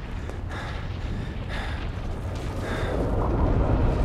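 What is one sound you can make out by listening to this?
A man speaks tensely.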